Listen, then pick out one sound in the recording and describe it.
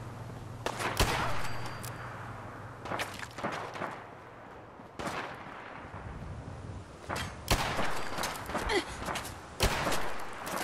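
A pistol fires single loud shots, a few seconds apart.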